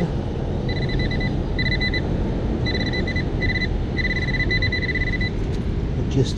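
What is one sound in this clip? A metal detector beeps in short, repeated bursts.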